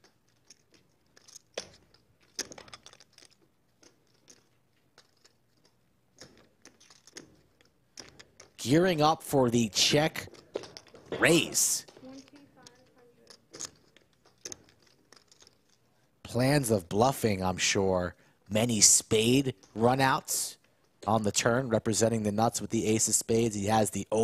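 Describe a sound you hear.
Poker chips click and clatter as they are stacked and pushed.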